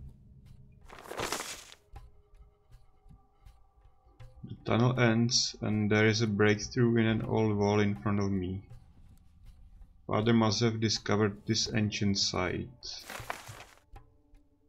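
A paper scroll rustles as it unrolls.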